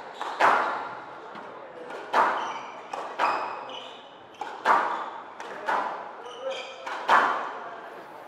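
A squash ball smacks sharply against walls and rackets, echoing in a hard room.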